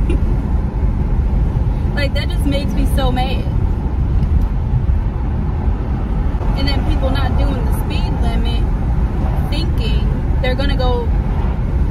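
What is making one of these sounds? A car engine and road noise rumble steadily throughout.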